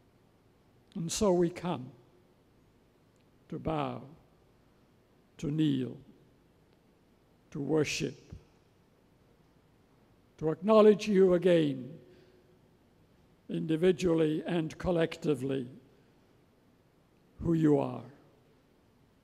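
An elderly man speaks slowly and calmly into a microphone, with long pauses, in a reverberant hall.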